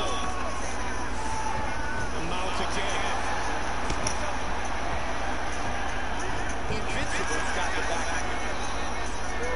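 Fists thud against a body in quick blows.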